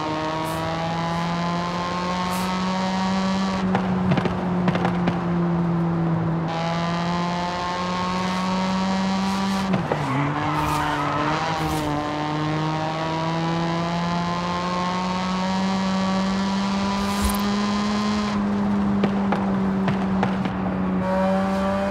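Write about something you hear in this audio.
A sports car engine hums steadily at speed, its pitch rising and falling with gear shifts.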